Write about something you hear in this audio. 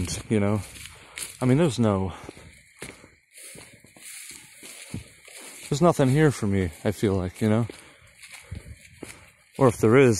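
Footsteps rustle through dry leaves and grass.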